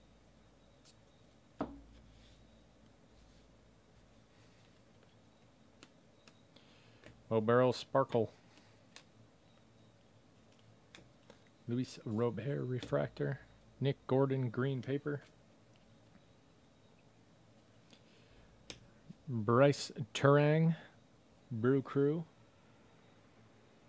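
Cards shuffle and flick softly between fingers.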